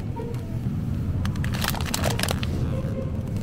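A plastic bag crinkles and rustles as a hand handles it.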